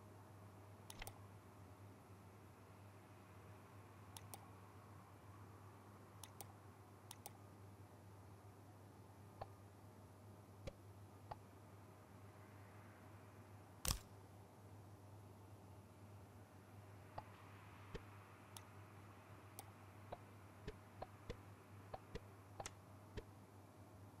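Short soft clicks sound now and then as pieces snap into place.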